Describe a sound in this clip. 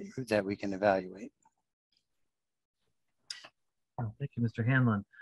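A man speaks calmly and close to a microphone, with short pauses.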